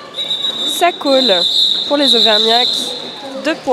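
A referee's whistle blows a long, shrill blast.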